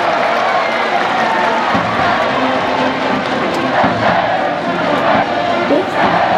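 A large crowd cheers and chants steadily all around in an open stadium.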